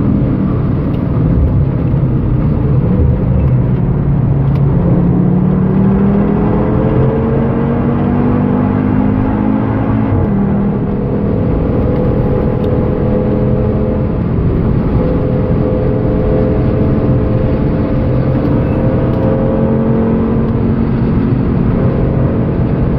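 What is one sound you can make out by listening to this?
A car engine roars loudly from inside the cabin, its pitch climbing steadily as the car speeds up.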